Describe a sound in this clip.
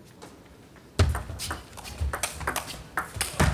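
A table tennis ball clicks back and forth between paddles and the table in a quick rally.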